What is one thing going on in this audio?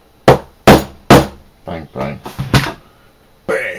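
A wooden mallet knocks on leather.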